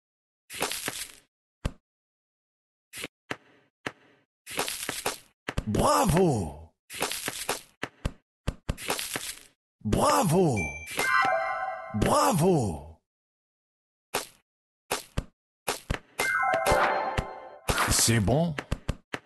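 Game pieces pop and whoosh in quick bursts as they clear.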